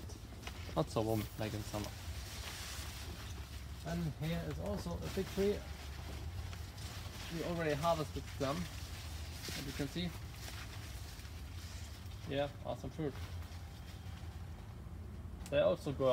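Large leaves rustle as a young man pushes through them.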